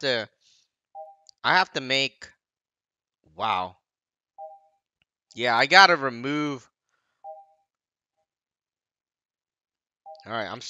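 Short electronic menu blips chime now and then.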